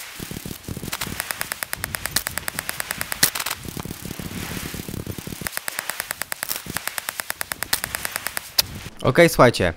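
A stone axe chops rapidly and repeatedly into a palm trunk.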